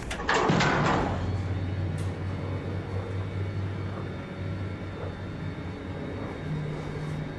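An elevator hums low and steadily.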